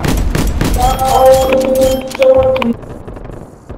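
A rifle fires rapid gunshots in quick bursts.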